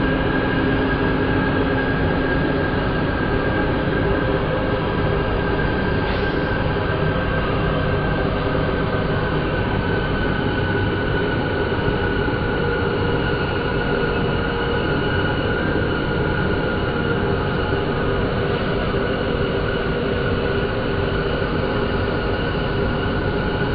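A train rumbles and hums steadily along the tracks.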